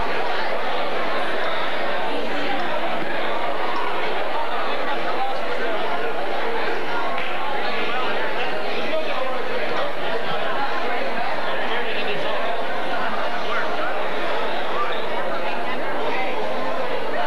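A crowd of men and women chatters throughout, echoing in a large hall.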